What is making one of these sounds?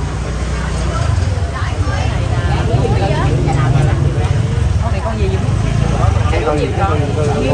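A middle-aged woman talks close by.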